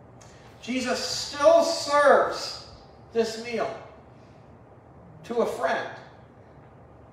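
A man speaks with animation through a microphone in a room with a slight echo.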